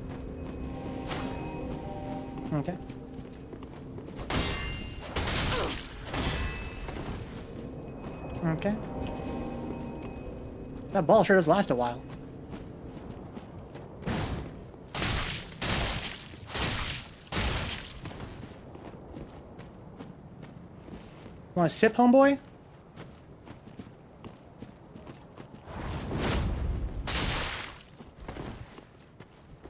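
Metal blades clash and swish in a fight.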